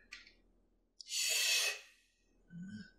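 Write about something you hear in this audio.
A man hushes sharply.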